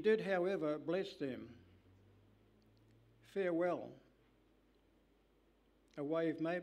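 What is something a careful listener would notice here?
An elderly man speaks slowly and calmly into a microphone, with pauses between phrases.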